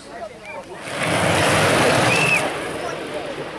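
A soapbox kart's wheels rumble past on asphalt.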